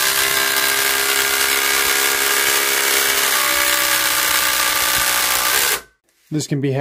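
An impact driver whirs and hammers loudly as it drives a screw into wood.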